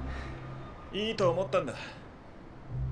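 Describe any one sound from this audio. A second man answers tensely, close by.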